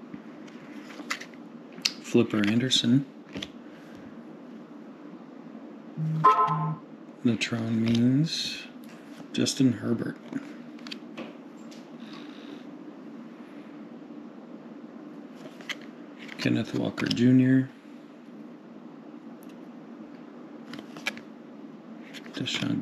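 Trading cards slide against each other in the hands.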